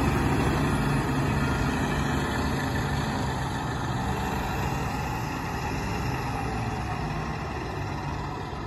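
A fire engine's diesel motor rumbles steadily close by.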